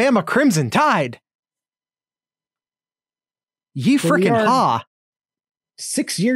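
A man talks back over an online call.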